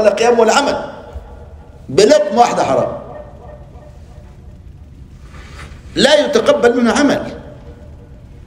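An elderly man speaks calmly into a microphone in short phrases.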